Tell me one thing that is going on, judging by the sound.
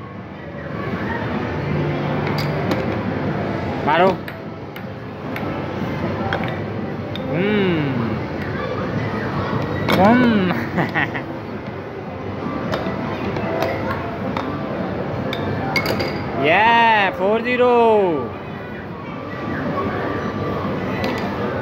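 A plastic puck clacks against mallets and the table's rails.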